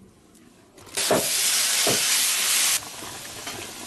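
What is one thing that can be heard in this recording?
Chunks of vegetable slide with a splash into simmering broth.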